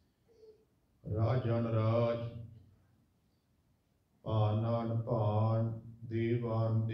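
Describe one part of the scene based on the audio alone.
A man sings in a sustained chanting voice into a microphone.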